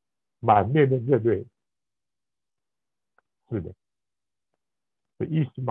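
An elderly man speaks slowly and haltingly over an online call.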